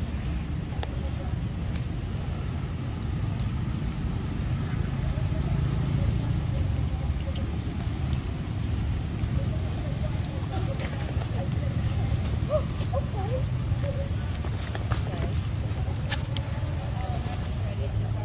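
A monkey bites and chews soft fruit close by.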